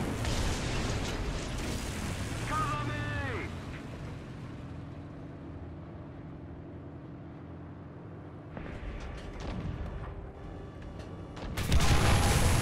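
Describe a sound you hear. A tank engine rumbles and idles steadily.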